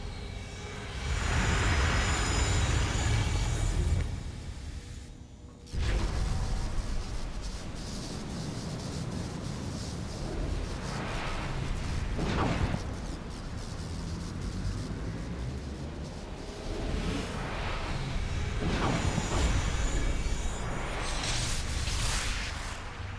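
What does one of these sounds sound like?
Magical energy surges with a deep roar and crackles sharply.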